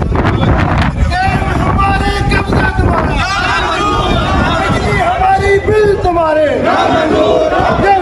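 A crowd of men chants slogans loudly in unison.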